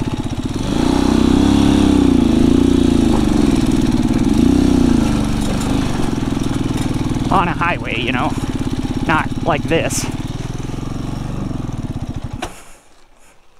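A motorcycle engine runs and revs.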